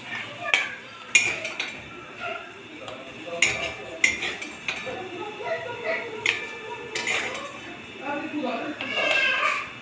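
A spatula taps against a plate as food is served.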